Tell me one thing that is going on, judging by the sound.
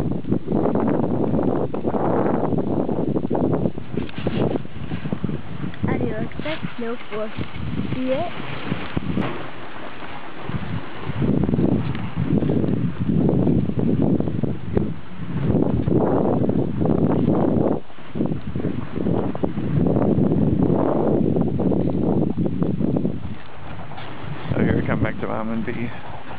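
Sled runners hiss and scrape over snow.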